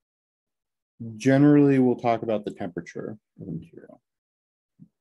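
A man speaks calmly through a close microphone.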